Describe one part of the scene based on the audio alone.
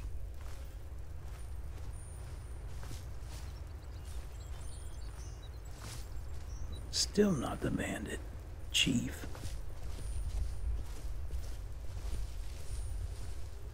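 Footsteps crunch softly on leaves and stone.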